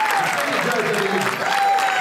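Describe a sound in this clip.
A crowd in a large hall cheers and shouts.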